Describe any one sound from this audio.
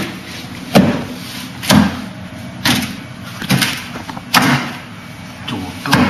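Hands and forearms strike a wooden practice dummy with sharp, knocking thuds.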